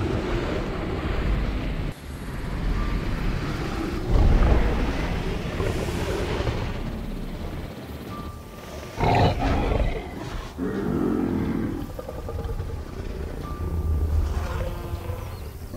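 A large creature roars with a deep growl.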